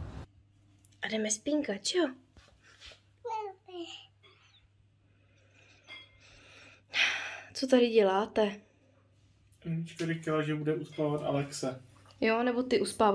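A young woman talks close by in a soft, playful voice.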